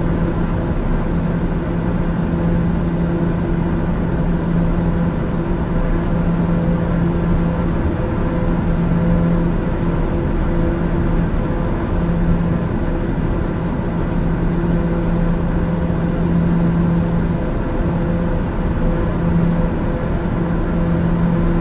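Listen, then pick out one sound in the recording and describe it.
A single-engine turboprop drones steadily while cruising, heard from inside the cockpit.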